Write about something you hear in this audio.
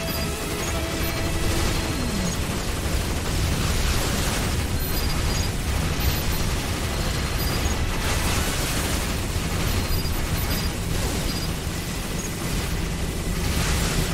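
Rapid laser fire and shots blast without pause.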